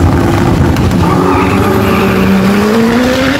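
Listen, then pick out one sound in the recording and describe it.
A car engine roars and rises in pitch as the car speeds away.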